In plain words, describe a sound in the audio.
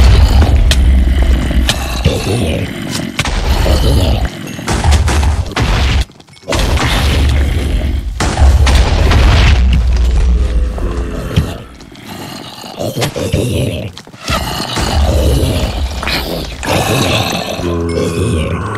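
Swords strike in a video game battle, with quick sharp hits.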